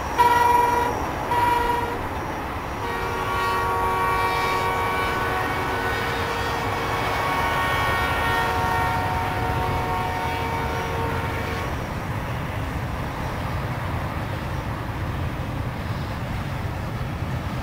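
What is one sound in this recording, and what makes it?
A freight train rumbles along the tracks in the distance.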